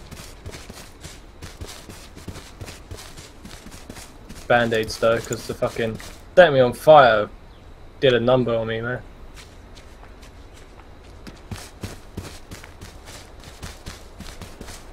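Footsteps thud quickly over grass and dirt.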